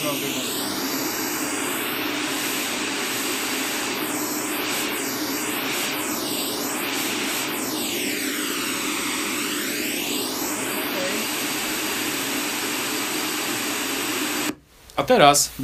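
A loudspeaker plays a steady rushing hiss whose tone sweeps and shifts as it is moved.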